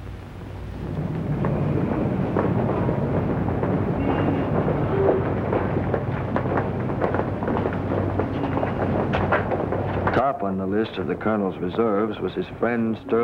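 A busy street hums with crowd and traffic.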